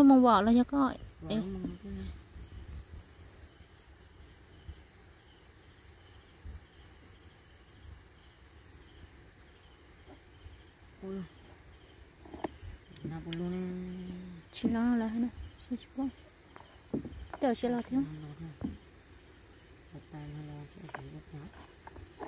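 A young man talks nearby.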